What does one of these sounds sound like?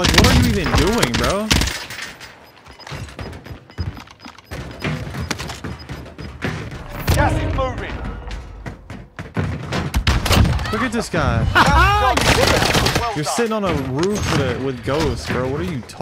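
Rifle shots crack in quick bursts.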